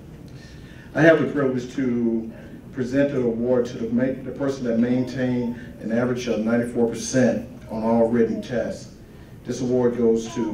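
A man speaks calmly into a microphone over loudspeakers.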